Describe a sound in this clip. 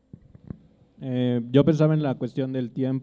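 A man speaks into a microphone in a calm voice.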